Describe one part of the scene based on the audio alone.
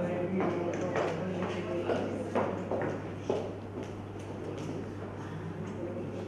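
A woman's high heels click across a wooden floor.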